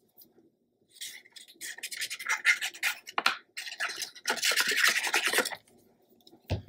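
A glue bottle squirts and squelches as it is squeezed.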